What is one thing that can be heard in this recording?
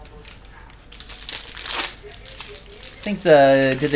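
Foil wrapping tears open.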